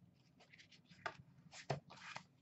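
A plastic case rattles and clicks as a hand lifts it.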